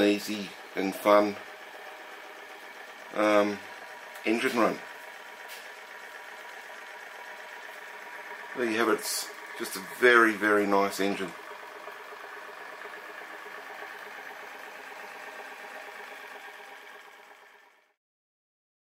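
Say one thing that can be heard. A small steam engine runs with a steady, whirring hum.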